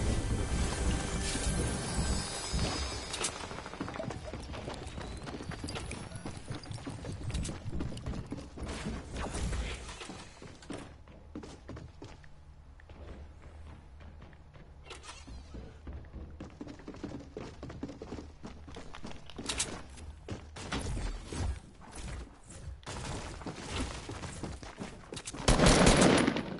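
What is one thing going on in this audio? Footsteps thud on wooden floors.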